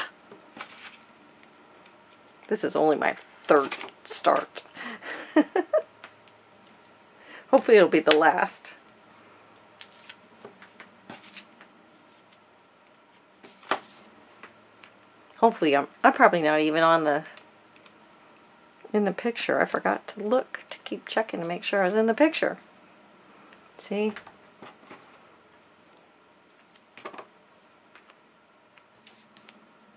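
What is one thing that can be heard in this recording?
Stiff paper rustles and scrapes softly as it is handled.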